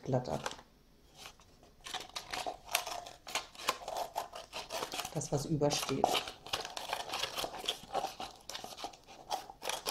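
Scissors snip through a paper cup.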